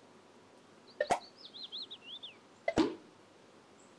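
A hand slaps a bald head with a sharp swish.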